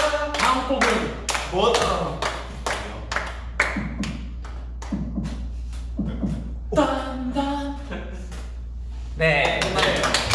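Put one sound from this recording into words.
A group of young men clap their hands rhythmically close by.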